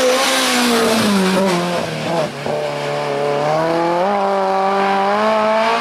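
A rally car engine drops in pitch, then climbs again as it pulls away.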